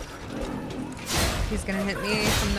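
A metal weapon clangs in a fight.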